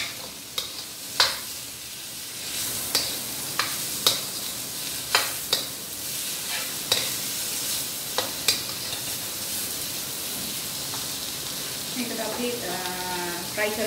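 Vegetables sizzle in a hot wok.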